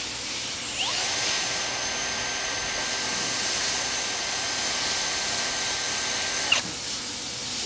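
A cordless drill spins a wire brush.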